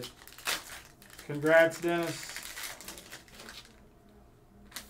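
A foil card pack crinkles and tears open.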